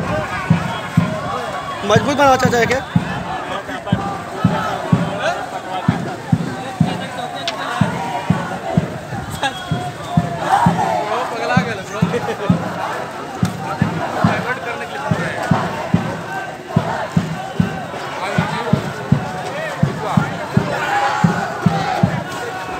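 A crowd of men talks and shouts outdoors.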